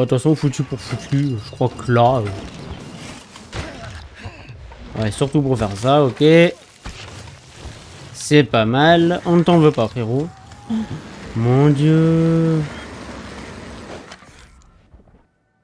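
Bicycle tyres rattle over a rough dirt trail.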